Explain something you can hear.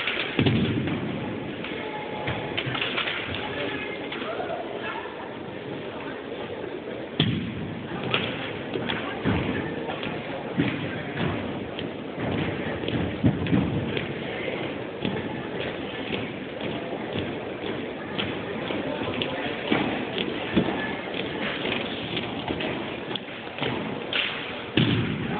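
Rifles thump and click as a drill team handles them in a large echoing hall.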